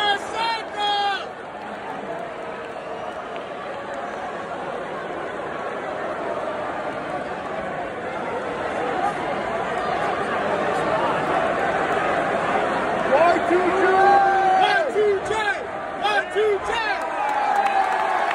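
A large crowd murmurs and cheers in a vast echoing arena.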